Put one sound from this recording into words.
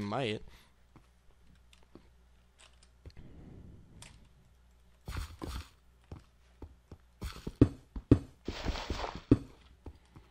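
A pickaxe chips repeatedly at stone.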